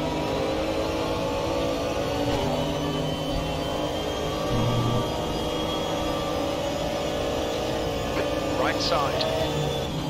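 A racing car engine roars steadily at high revs.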